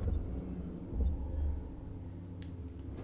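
Footsteps thud on pavement.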